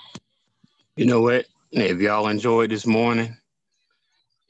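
A man sings loudly over an online call.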